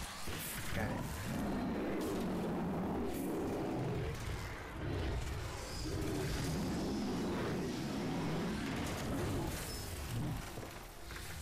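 A huge creature growls and roars.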